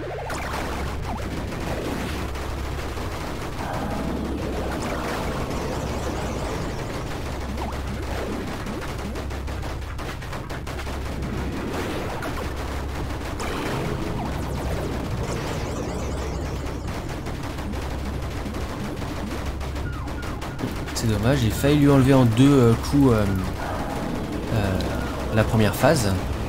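Rapid blaster shots fire again and again.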